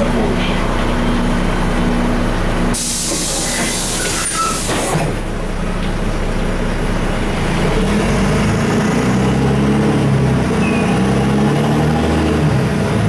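A bus engine hums steadily from inside the bus as it drives along.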